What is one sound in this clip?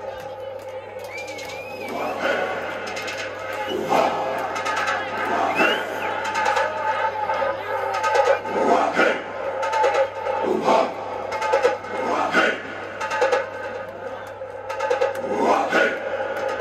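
Loud electronic dance music plays through loudspeakers in an echoing club.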